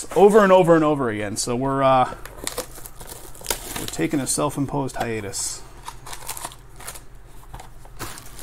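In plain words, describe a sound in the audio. Cardboard boxes knock and scrape as they are handled.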